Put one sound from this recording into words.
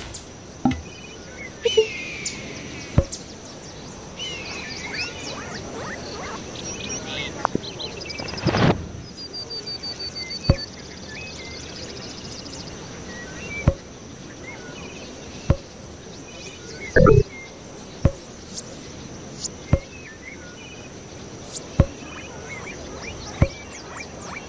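Short clicks sound as items are placed, one at a time.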